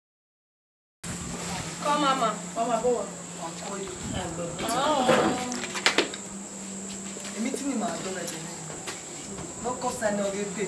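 Young women talk calmly in a group.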